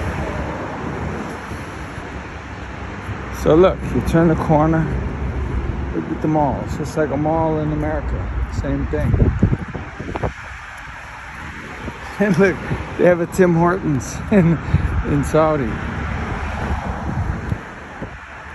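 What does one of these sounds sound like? Traffic roars past on a busy road nearby.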